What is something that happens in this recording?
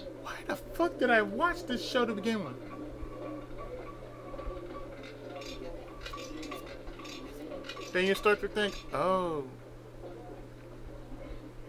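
A roulette ball rolls and rattles around a spinning wheel.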